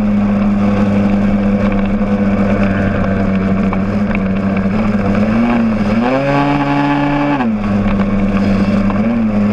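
A motorcycle engine hums steadily up close, revving up briefly and then settling back.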